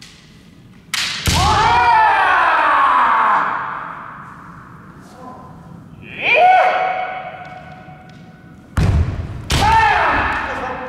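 Bamboo swords strike with sharp cracks.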